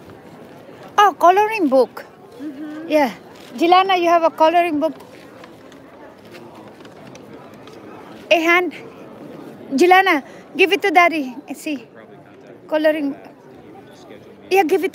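A young girl talks close by in short, high bursts.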